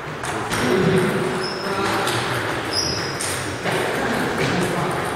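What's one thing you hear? Table tennis balls click sharply off paddles and tables in an echoing hall.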